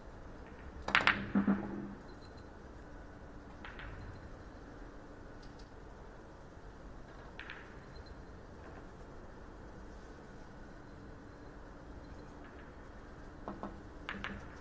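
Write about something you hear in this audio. A cue sharply strikes a ball.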